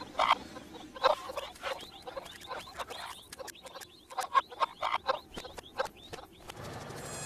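Small feet patter quickly across sand.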